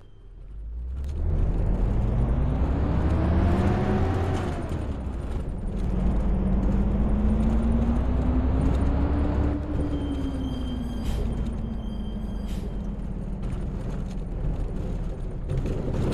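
A diesel bus engine revs up as the bus pulls away and accelerates.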